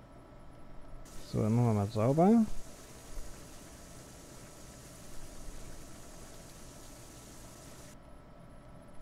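Water jets spray hard with a steady hiss.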